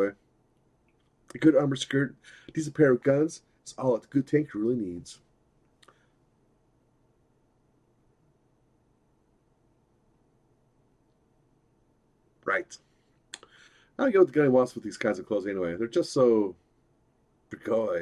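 A man reads out lines with animation, close to a microphone.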